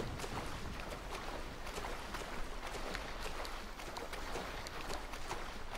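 Water splashes steadily as a swimmer strokes through it.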